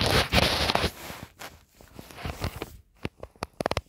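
Clothing rustles close by.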